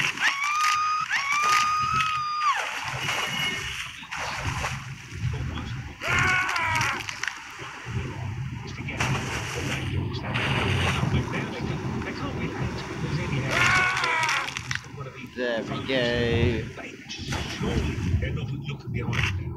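Water splashes loudly as a shark bursts out of the sea.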